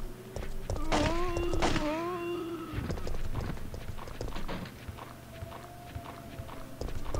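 Monsters groan and moan nearby.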